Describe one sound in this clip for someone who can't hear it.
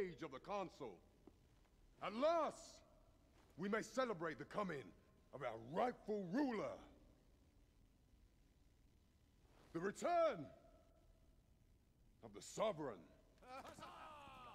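A man speaks loudly and grandly, like a proclamation.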